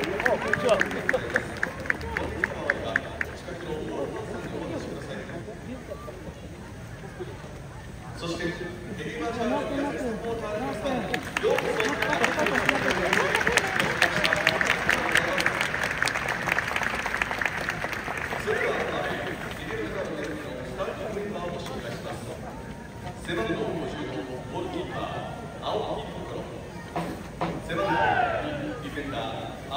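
A stadium crowd murmurs and chatters.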